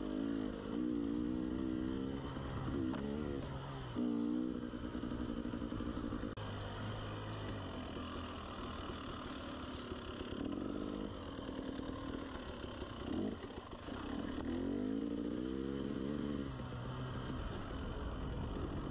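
A dirt bike engine revs up and down as it rides along a trail.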